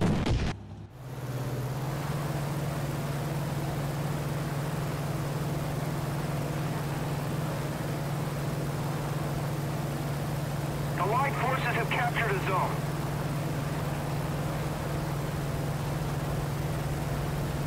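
Propeller aircraft engines drone steadily.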